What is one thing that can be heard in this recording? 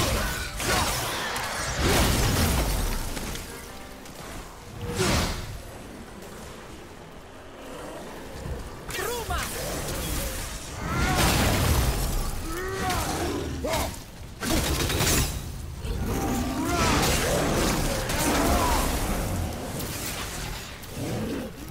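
Heavy axe blows strike and smash.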